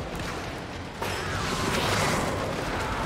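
Energy blasts whoosh and crackle loudly.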